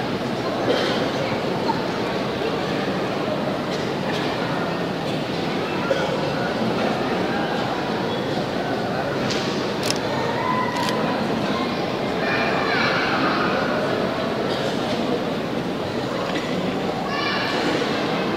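A large crowd murmurs and shuffles in a big echoing hall.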